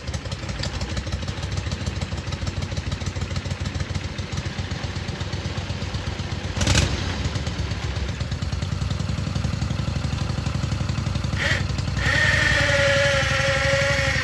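A small engine chugs and idles steadily close by.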